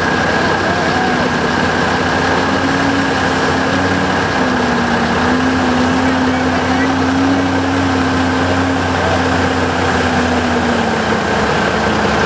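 A heavy truck's diesel engine roars.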